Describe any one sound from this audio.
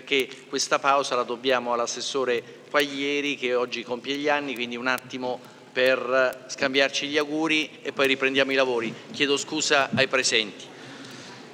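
A man speaks calmly through a microphone in a large room.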